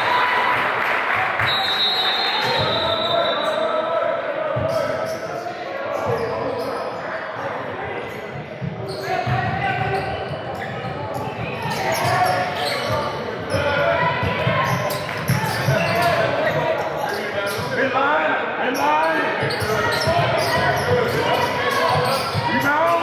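Spectators chatter in a large echoing gym.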